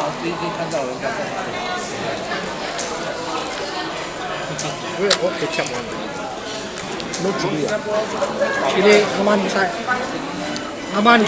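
Many voices murmur around in a busy echoing room.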